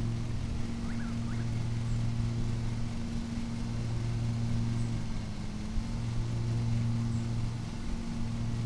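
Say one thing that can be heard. A lawn mower engine hums steadily.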